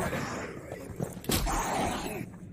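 A heavy weapon thuds into a creature with a sudden blow.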